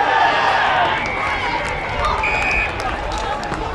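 An umpire blows a whistle in short sharp blasts.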